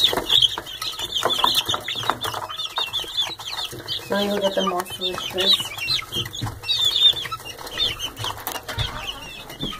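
Chicks peep and chirp busily close by.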